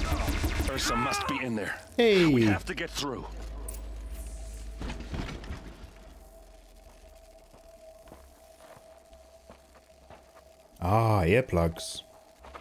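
A man talks into a close microphone.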